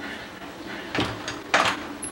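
A door handle clicks.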